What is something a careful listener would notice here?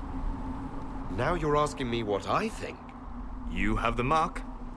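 A man talks quietly with a soft, measured voice.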